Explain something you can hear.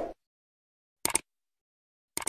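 A mouse click sounds.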